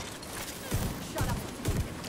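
Electricity crackles and snaps sharply.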